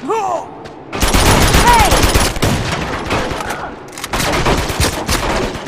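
Rapid gunfire rattles in close bursts.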